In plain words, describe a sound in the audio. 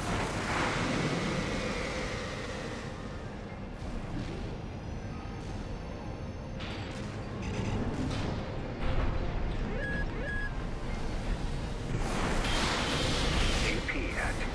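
A robot's thrusters roar as it boosts through the air.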